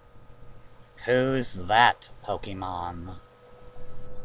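A young woman speaks in an animated voice.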